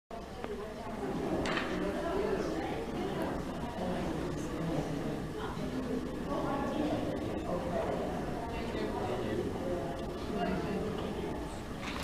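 A group of people talk and murmur in a large, echoing hall.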